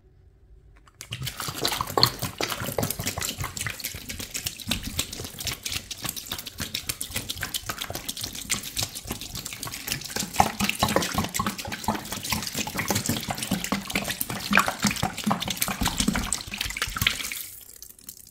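Liquid pours and splashes into water in a plastic tub.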